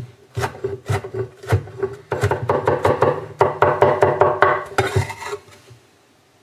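A cleaver chops rapidly on a wooden board.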